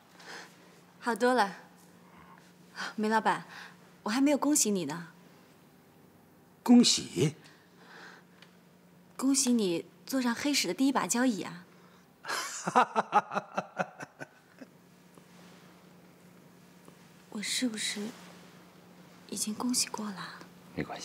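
A young woman speaks cheerfully and with animation, close by.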